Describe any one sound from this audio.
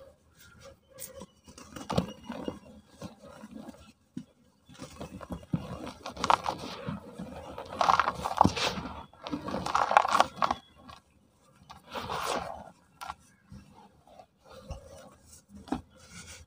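Hands crumble and squeeze dry, powdery clay close up.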